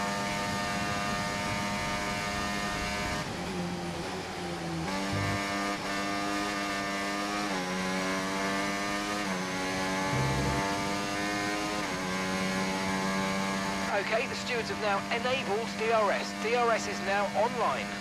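A racing car engine whines at high revs, dropping in pitch with each gear change.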